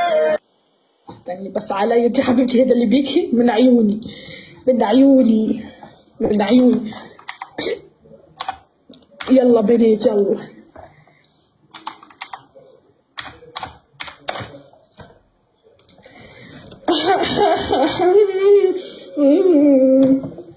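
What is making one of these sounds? A young woman talks with animation over an online call.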